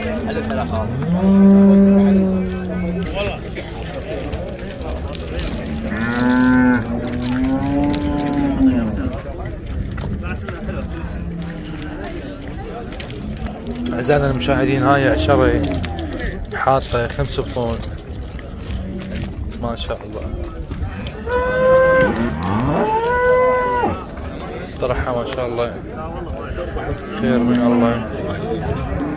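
Cattle moo loudly nearby.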